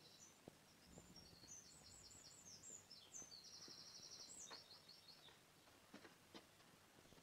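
Footsteps crunch through dry grass and undergrowth.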